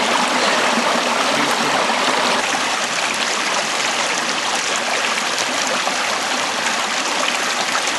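A shallow stream rushes and splashes over rocks close by.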